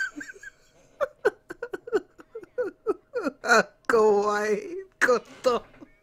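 A young man laughs heartily close to a microphone.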